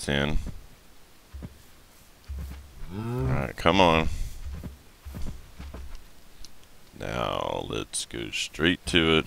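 Cows moo loudly nearby.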